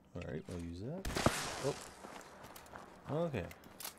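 A gun clicks and clatters as it is handled.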